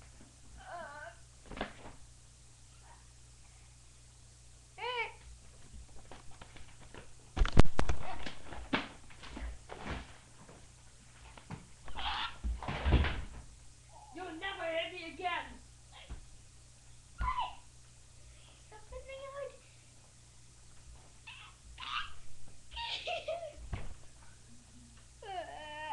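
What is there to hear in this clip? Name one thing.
A child talks and squeals with animation close by.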